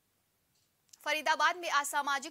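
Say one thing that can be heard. A woman reads out the news calmly and clearly into a microphone.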